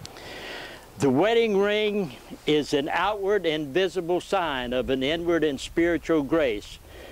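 An elderly man speaks calmly and clearly, close by.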